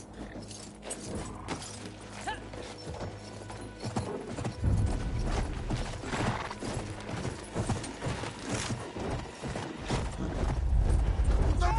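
A horse gallops, hooves thudding on sand.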